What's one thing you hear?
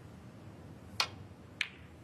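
A cue tip strikes a snooker ball with a sharp click.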